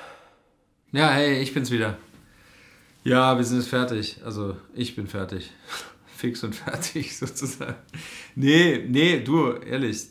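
A man speaks calmly and warmly into a phone, close by.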